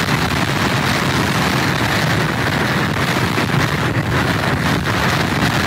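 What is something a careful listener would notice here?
Rough surf crashes and roars against pier pilings.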